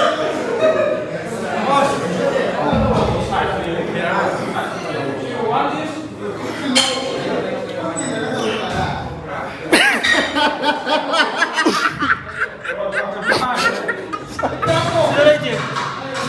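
A middle-aged man talks close by, with animation.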